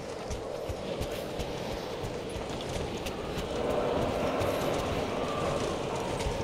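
Footsteps crunch on snow and creak on wooden boards.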